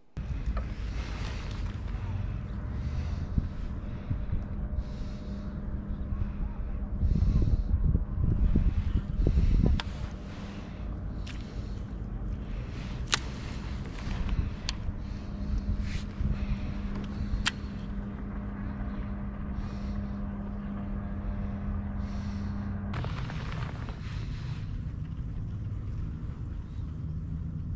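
Wind rumbles loudly outdoors.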